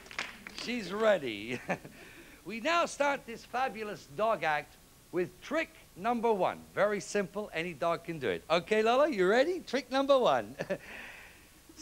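A man speaks with animation, heard through a microphone in a large room.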